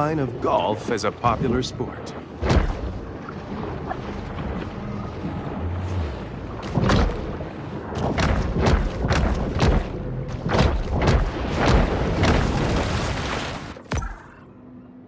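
Water rushes and swirls in a muffled, underwater churn.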